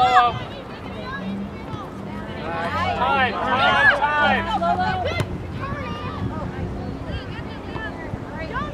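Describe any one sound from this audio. Spectators and players shout and cheer outdoors.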